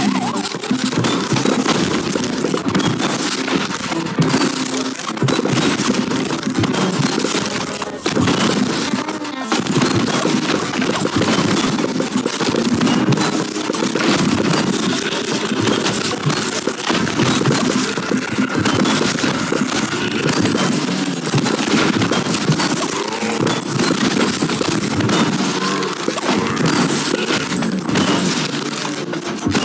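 Fiery shots whoosh and burst in a rapid, steady stream.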